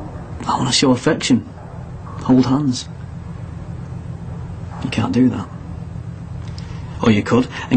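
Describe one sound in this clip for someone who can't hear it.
A young man speaks calmly in short bursts, close to a microphone.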